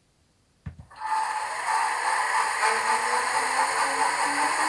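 An electric locomotive motor hums steadily.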